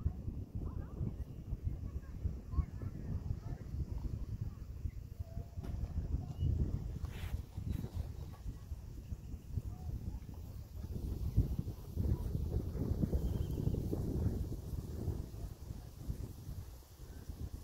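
Goslings peep softly nearby.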